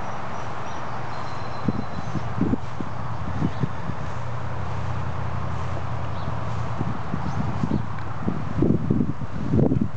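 Wind rushes steadily outdoors, buffeting the microphone in low gusts.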